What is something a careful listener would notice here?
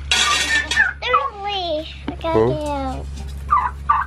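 A young child speaks in a high voice.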